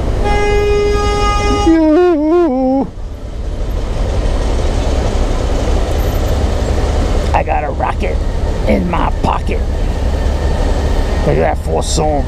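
A motorcycle engine idles with a low rumble, close by.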